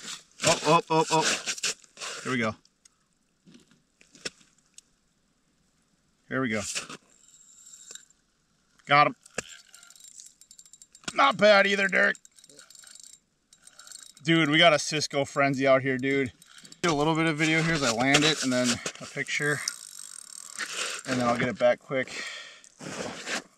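A man talks casually into a nearby microphone, in bursts with pauses.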